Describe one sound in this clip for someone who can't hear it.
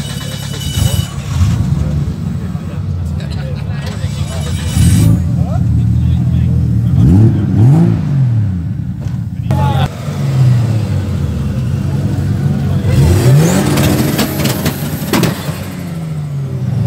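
A car engine revs up sharply and drops back several times.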